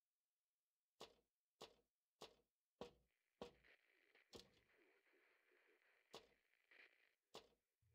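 Hands and feet clank on metal ladder rungs during a climb.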